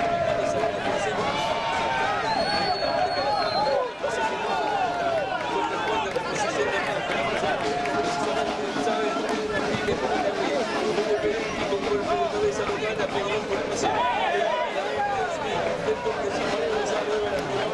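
A crowd of spectators shouts and chatters nearby, outdoors.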